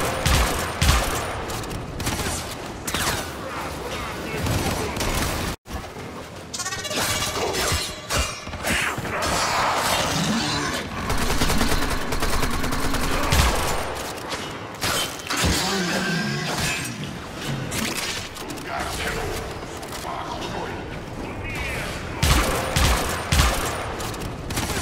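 Gunfire and energy blasts crackle in bursts.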